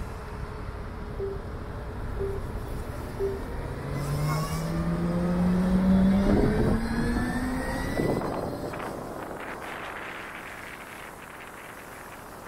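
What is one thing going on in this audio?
Traffic rumbles on a busy street nearby.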